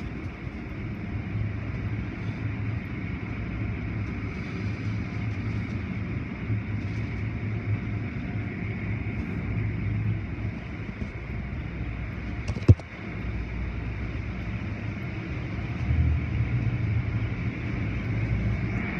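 Machinery rumbles steadily.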